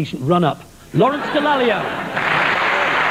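A second man speaks emphatically through a microphone.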